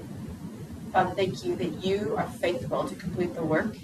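A woman speaks calmly in a large echoing room.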